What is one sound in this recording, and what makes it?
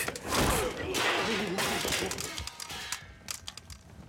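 Swords clash and swish in a fight.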